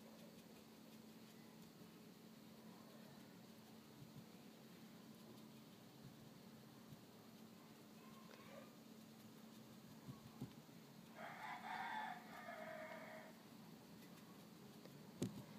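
A paintbrush dabs and scrapes softly against a hard surface.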